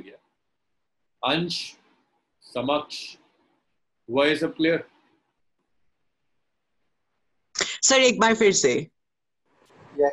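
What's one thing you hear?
A young man speaks calmly into a microphone in short phrases with pauses.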